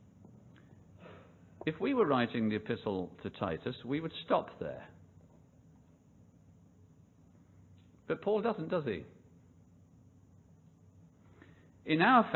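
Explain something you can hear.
An elderly man speaks calmly into a microphone, heard in short phrases with pauses.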